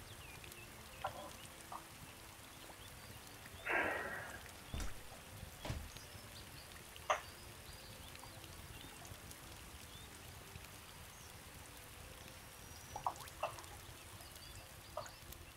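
Soft game menu clicks and blips sound now and then.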